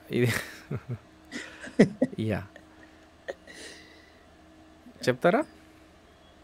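Men laugh over an online call.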